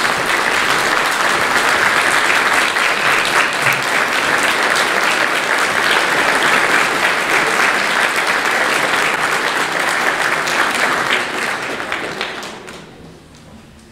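An audience applauds in a large echoing hall, then the clapping fades away.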